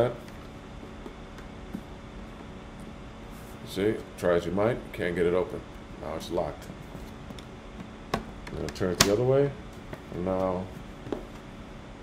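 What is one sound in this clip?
A small plastic device clicks and knocks as it is handled.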